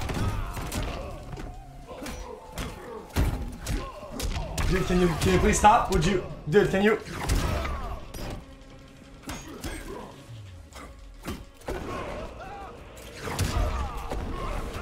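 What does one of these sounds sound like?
Punches and kicks land with sharp thuds and cracks.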